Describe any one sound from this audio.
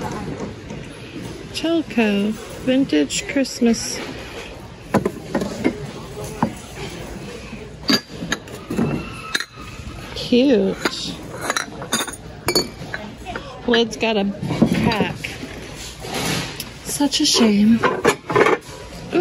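Ceramic mugs and lids clink and knock as they are picked up and handled.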